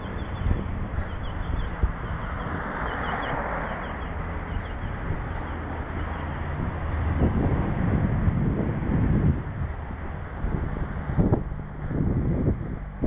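Bicycle tyres roll over rough pavement.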